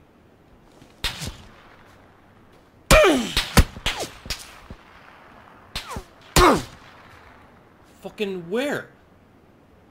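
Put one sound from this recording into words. Gunshots crack nearby in several quick bursts.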